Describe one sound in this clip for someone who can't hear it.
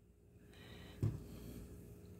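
A plastic cup is set down on a wooden table with a light knock.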